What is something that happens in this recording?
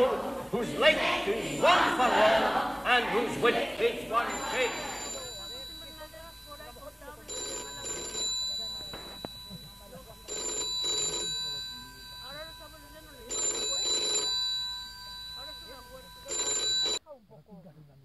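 A group of men and women chat and call out nearby outdoors.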